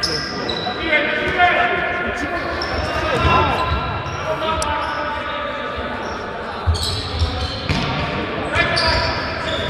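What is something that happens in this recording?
A futsal ball is kicked in a large echoing hall.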